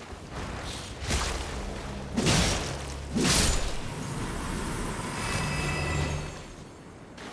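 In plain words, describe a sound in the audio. Ice crystals burst and shatter loudly.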